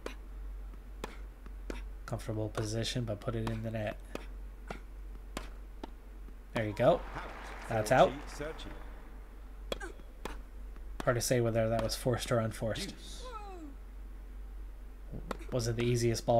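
Tennis balls are struck with sharp pops.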